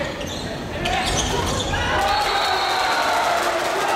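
A volleyball is hit hard.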